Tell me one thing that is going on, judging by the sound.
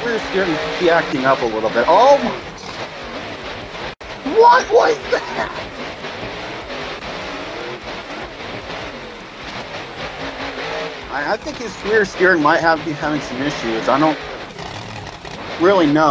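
A monster truck engine roars and revs.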